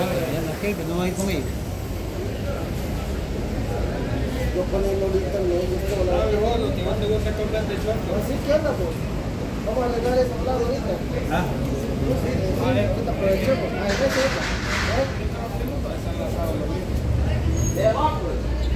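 A middle-aged man talks calmly close by.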